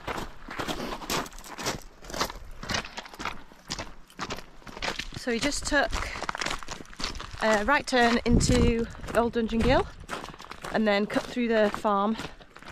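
Footsteps crunch on gravel at a steady walking pace.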